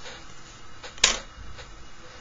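A plastic set square knocks onto a table.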